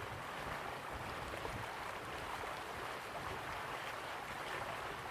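A waterfall rushes and splashes steadily.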